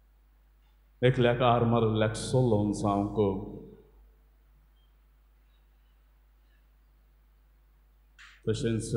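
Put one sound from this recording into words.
A man chants slowly in a sung voice through a microphone.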